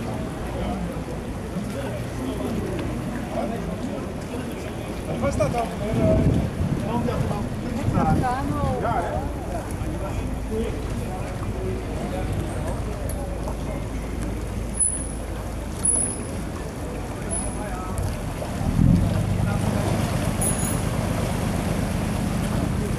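Paddles splash softly in water.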